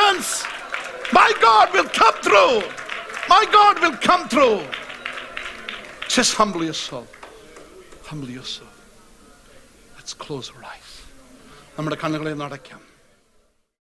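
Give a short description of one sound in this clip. A middle-aged man preaches with animation through a microphone in a large echoing hall.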